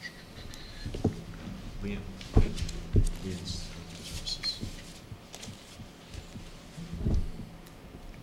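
Knocks and bumps sound on a table near a microphone.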